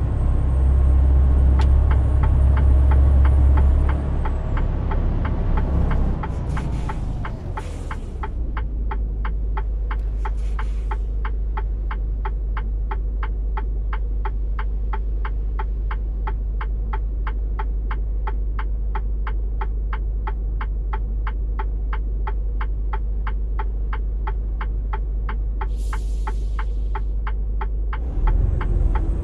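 A truck engine rumbles steadily, its pitch dropping as it eases off.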